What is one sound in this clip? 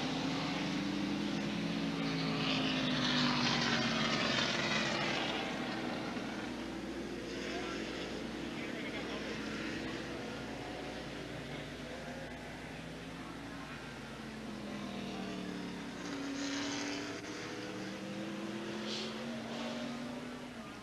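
Race car engines roar and rev loudly as a pack of cars accelerates past.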